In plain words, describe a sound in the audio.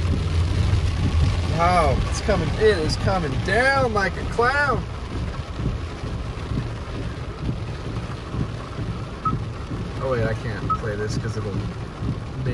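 A car engine rumbles low while driving.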